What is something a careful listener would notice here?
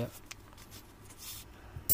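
A plastic sleeve crinkles in someone's hands.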